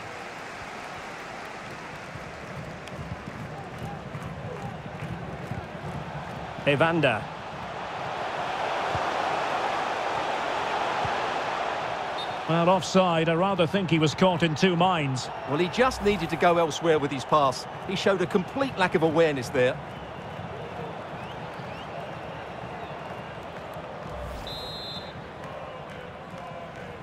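A large stadium crowd murmurs and cheers in the distance, swelling and fading.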